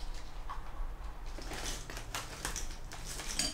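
A toothbrush scrubs against teeth.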